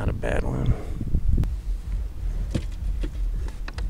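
A fish thumps against a plastic kayak deck.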